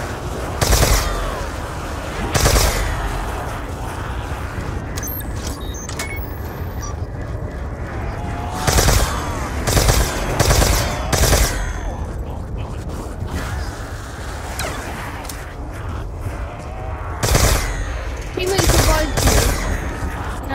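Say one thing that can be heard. A ray gun fires loud, sharp bursts of energy.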